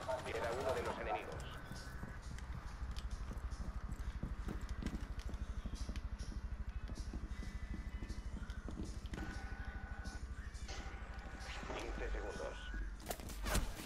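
Footsteps thud quickly and steadily on a hard floor.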